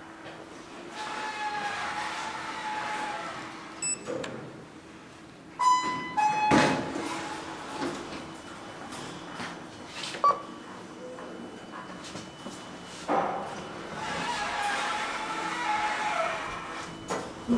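Elevator doors slide open and shut with a soft rumble.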